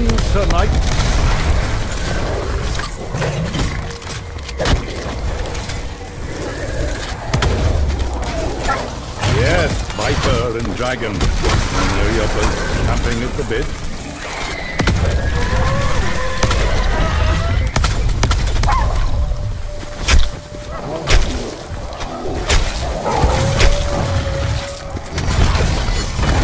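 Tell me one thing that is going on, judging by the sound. Magic blasts crackle and burst in quick bursts.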